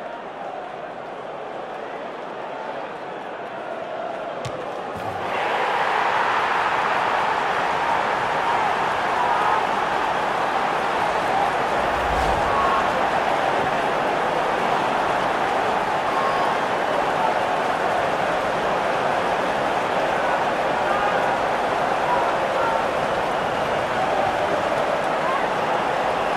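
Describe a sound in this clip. A large stadium crowd cheers and roars steadily, growing louder after a few seconds.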